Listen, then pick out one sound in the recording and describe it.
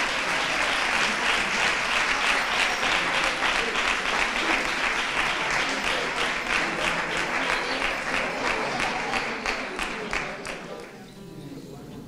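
An acoustic guitar strums along.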